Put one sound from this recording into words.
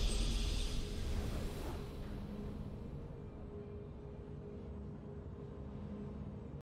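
A triumphant game fanfare plays and slowly fades.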